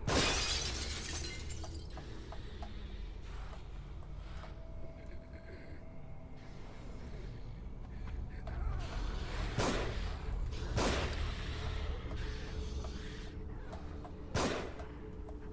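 A revolver fires with loud, sharp bangs.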